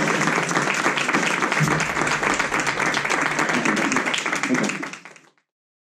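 A drummer plays a lively beat with crashing cymbals.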